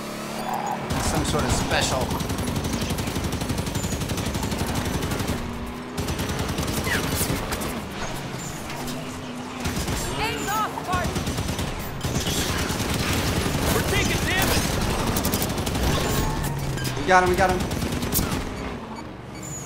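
A mounted machine gun fires bursts.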